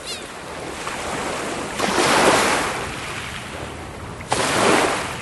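Small waves wash onto a pebbly shore and hiss as they draw back.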